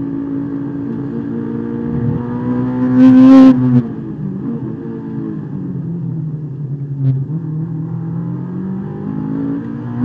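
A car engine roars loudly from inside the cabin, its pitch rising and falling with the gears.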